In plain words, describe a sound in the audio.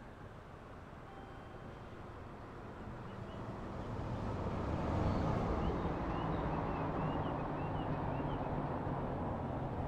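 An oncoming train rushes past close by with a growing roar.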